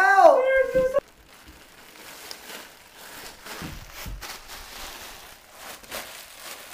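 A foil balloon crinkles and rustles.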